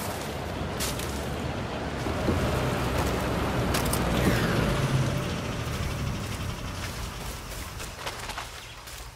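A small engine hums steadily, then fades.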